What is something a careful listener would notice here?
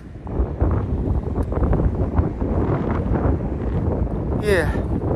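Wind buffets the microphone with a low rumble.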